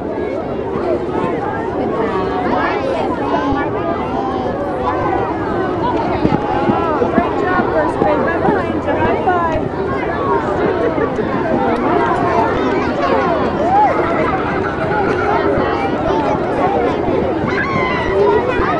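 A crowd of children chatter and shout all around, outdoors.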